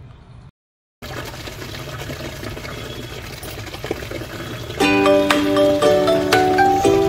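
Water runs from a tap into a bucket.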